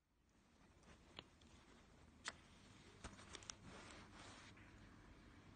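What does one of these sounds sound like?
A metal key ring clinks as a keychain is handled.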